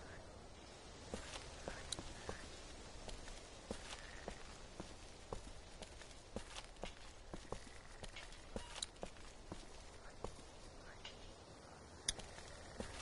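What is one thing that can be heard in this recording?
Footsteps walk on pavement.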